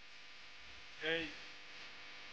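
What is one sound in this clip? A young woman calls out briefly nearby.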